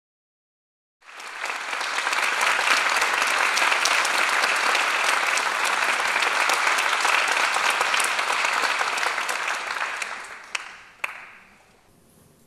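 An audience applauds loudly in a large hall, then the clapping dies away.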